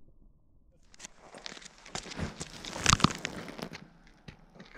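Water whooshes as it is flung into the cold air.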